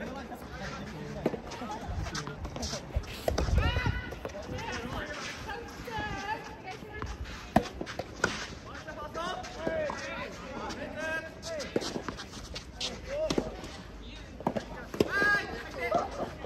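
Young men and women call out and chat nearby, outdoors.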